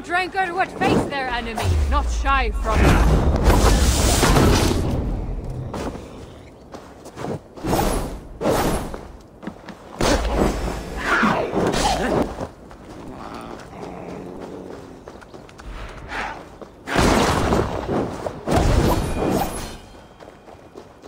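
Blades swing and strike hard in a close fight.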